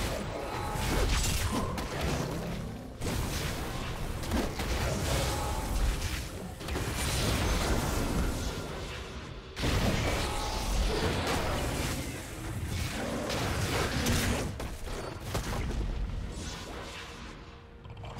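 Fantasy battle sound effects clash and burst in quick succession.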